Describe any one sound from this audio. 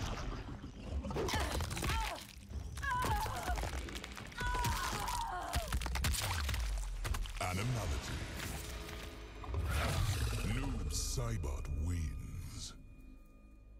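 A crocodile growls and roars loudly.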